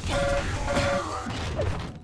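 A crackling energy weapon fires in short bursts.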